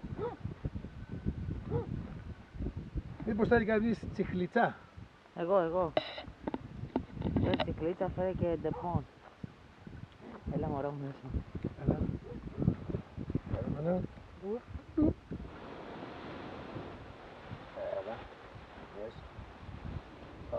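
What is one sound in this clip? Wind rushes over the microphone outdoors.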